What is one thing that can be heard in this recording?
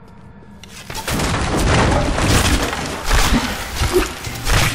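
Magic blasts and weapons clash loudly in a fight.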